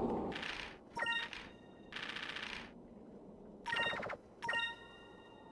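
Short electronic chimes beep a few times.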